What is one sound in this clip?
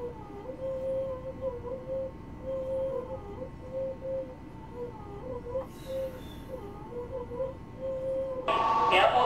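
An electric train hums steadily while standing still.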